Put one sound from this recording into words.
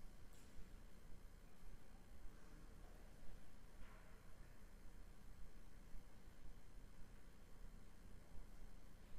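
A man speaks quietly far off in a large echoing church.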